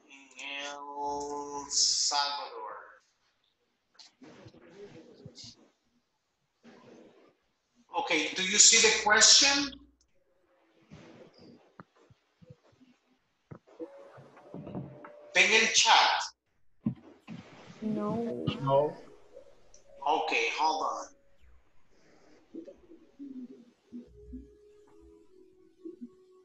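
A middle-aged man speaks with animation over an online call, in bursts with pauses.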